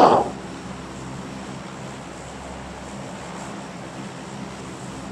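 A plane's engines drone steadily.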